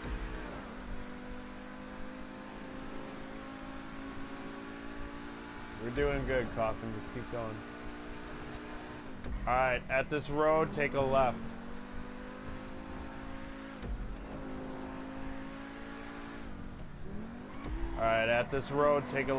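A sports car engine hums steadily as the car speeds along.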